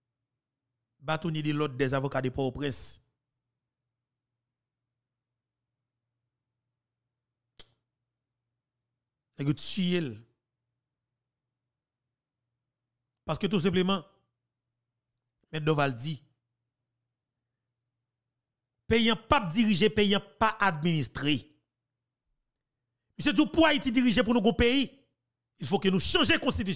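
A man speaks with animation into a close microphone, in short bursts separated by silence.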